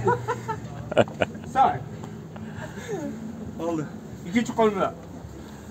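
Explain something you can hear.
Men talk and laugh loudly close by.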